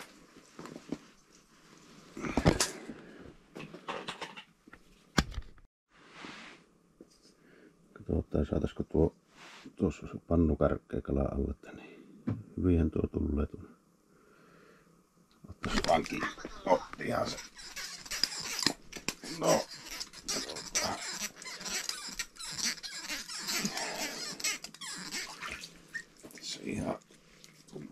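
A jacket sleeve rustles close by.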